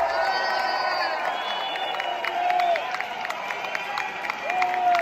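A rock band plays loudly, echoing through a large hall.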